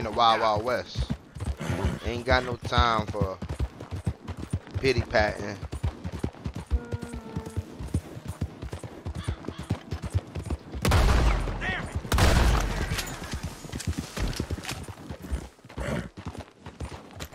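Horse hooves pound steadily on a dirt track.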